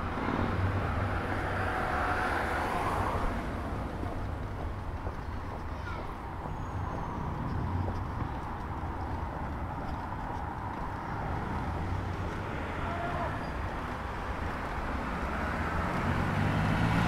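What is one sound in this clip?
City traffic rumbles steadily in the distance outdoors.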